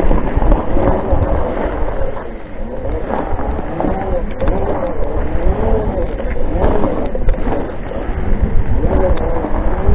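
Wheels roll and rumble over gravel.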